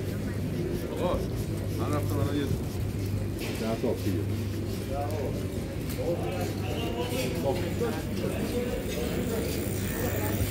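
Men and women talk nearby as they walk past.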